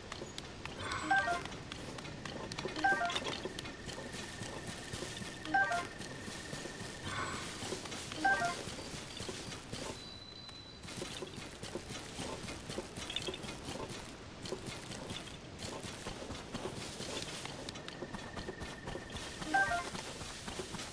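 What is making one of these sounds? A short bright chime rings several times.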